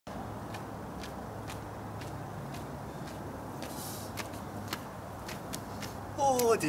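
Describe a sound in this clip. Footsteps tap steadily on a hard street.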